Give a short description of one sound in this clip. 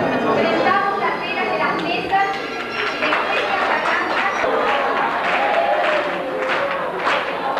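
A group of men and women sing together loudly, close by.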